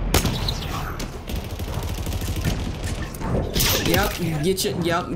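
Video game gunshots and blasts crackle rapidly.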